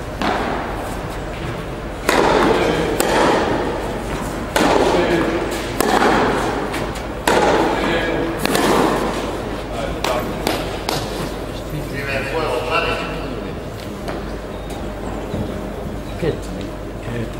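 Tennis balls are struck with rackets in a rally, echoing in a large indoor hall.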